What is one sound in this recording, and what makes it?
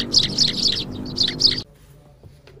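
Sparrows chirp at close range.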